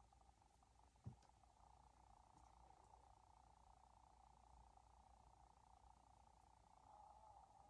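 Small plastic pieces click and knock softly nearby.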